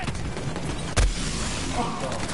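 An explosion booms in a game.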